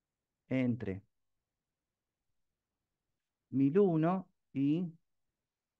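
A man speaks calmly through a microphone, as if on an online call.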